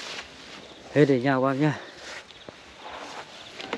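A middle-aged man speaks close to the microphone.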